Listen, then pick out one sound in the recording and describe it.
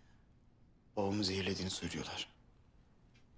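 A man speaks calmly and quietly nearby.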